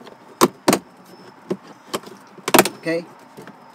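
Plastic trim clicks and snaps as it is pried loose.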